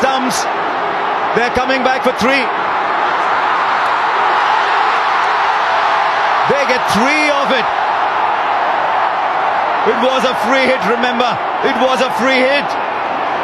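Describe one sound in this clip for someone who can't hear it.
A large crowd cheers and roars in a stadium.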